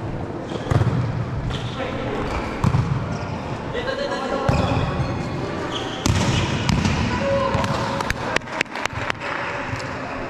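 Players hit a volleyball with sharp smacks that echo in a large hall.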